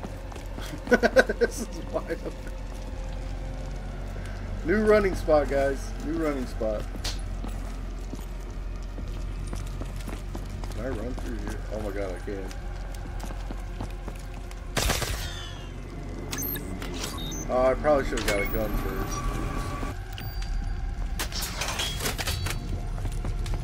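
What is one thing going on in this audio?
Gunshots fire in a video game.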